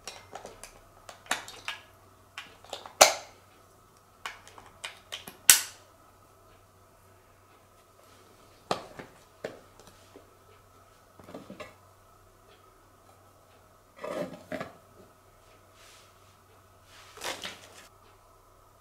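Cardboard rustles and taps as a box is handled and opened.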